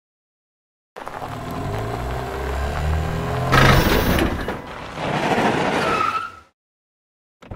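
A cartoon car engine revs.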